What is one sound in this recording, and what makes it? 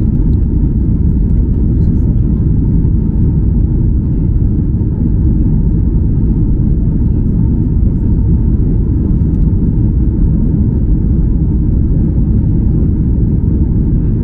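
Jet engines roar steadily inside an airplane cabin in flight.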